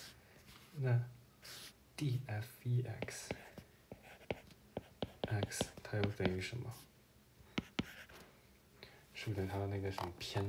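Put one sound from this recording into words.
A stylus taps and scratches on a glass tablet.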